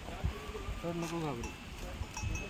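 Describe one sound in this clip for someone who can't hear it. A goat bleats nearby.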